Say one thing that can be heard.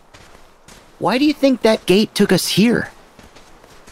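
A young man speaks with animation, in a questioning tone.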